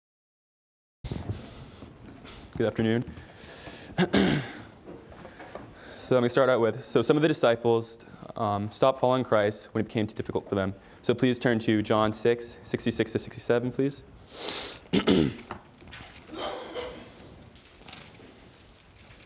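A man speaks calmly and clearly through a microphone in an echoing room.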